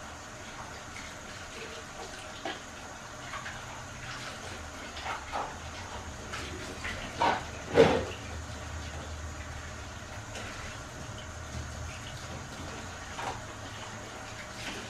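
Water runs from a tap.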